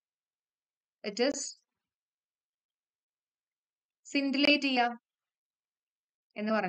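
A young woman speaks calmly and clearly into a close microphone, in short phrases with pauses.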